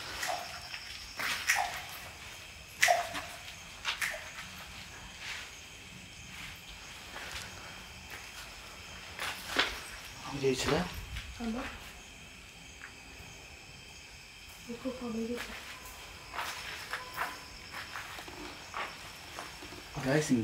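Footsteps climb concrete steps.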